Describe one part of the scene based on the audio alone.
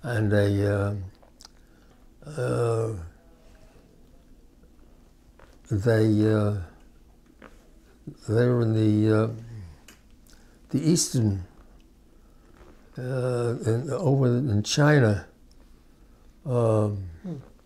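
An elderly man speaks slowly and close to a microphone, in short phrases with pauses.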